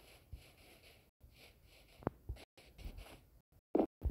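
Blows knock against wood in short, dull taps.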